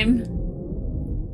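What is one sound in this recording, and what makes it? A young woman speaks briefly and with amusement.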